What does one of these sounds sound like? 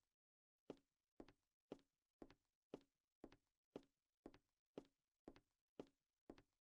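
Footsteps thud at an even walking pace.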